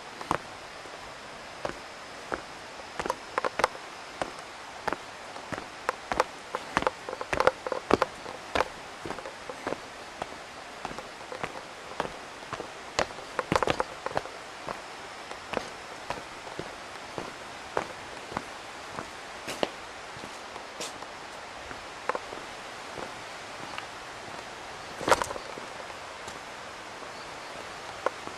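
Footsteps crunch and tap on a stone path outdoors.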